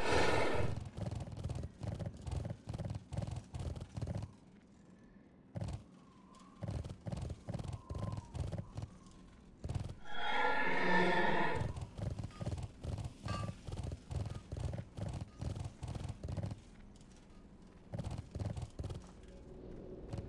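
Hooves of a riding animal clop in a quick, steady rhythm.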